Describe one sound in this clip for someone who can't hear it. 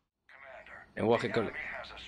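An elderly man speaks firmly over a radio link.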